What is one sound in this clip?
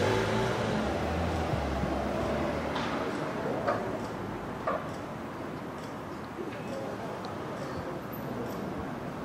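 A heavy float rolls slowly along the street with a low rumble.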